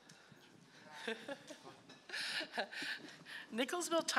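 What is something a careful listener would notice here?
A middle-aged woman laughs and sobs.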